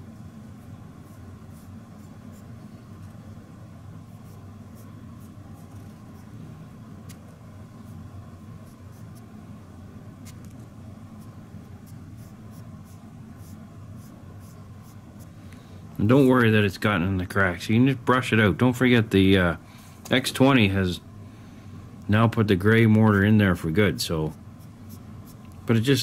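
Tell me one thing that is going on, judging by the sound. A fingertip rubs softly against a rough surface.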